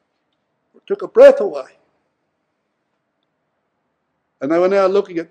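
An elderly man speaks calmly into a microphone, in short bursts.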